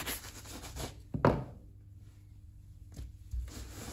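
A bristle brush scrubs a lathered leather shoe.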